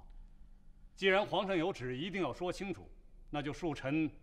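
A middle-aged man speaks with animation.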